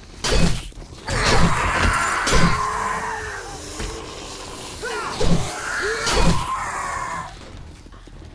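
A large bird shrieks harshly.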